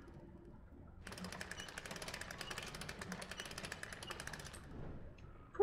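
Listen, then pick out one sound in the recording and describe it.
Metal gears turn with a rapid, steady ratcheting clatter.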